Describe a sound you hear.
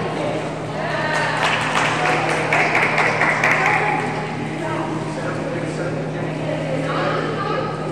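A swimmer splashes through the water.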